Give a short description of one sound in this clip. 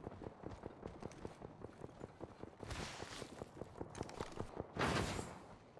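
Footsteps patter quickly on a hard floor.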